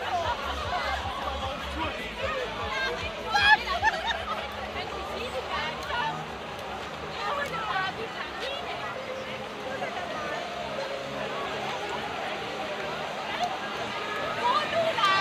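A crowd chatters and calls out outdoors.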